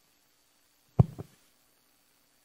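A microphone thumps loudly as it is set down.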